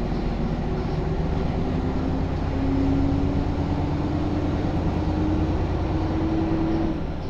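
A bus engine hums and rises in pitch as the bus picks up speed.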